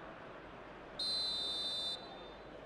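A referee's whistle blows a short shrill blast.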